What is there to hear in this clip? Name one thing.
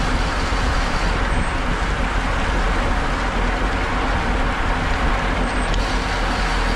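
Wind roars loudly past a moving bicycle.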